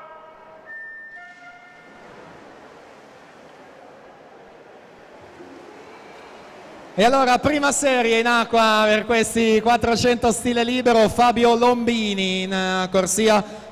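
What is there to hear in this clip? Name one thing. Swimmers dive in and splash through water.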